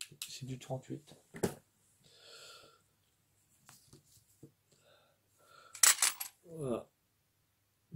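Small metal parts click and clack in a man's hands.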